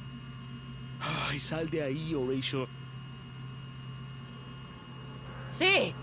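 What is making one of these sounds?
A man shouts angrily.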